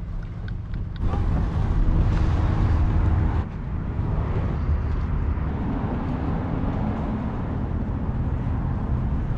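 A pickup truck engine rumbles steadily as the truck drives.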